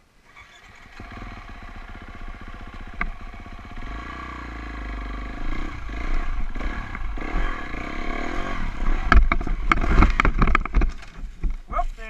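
A dirt bike engine revs loudly and unevenly.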